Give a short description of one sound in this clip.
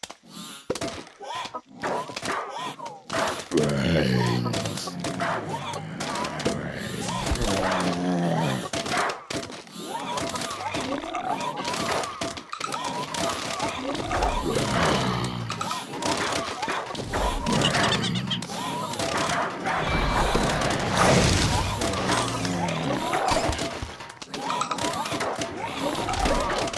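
Cartoon game effects pop and burst.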